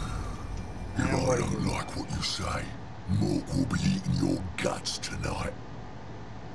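A man talks casually close to a microphone.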